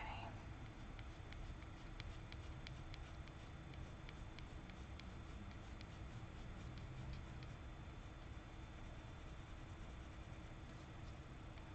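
A pencil scratches lightly on paper.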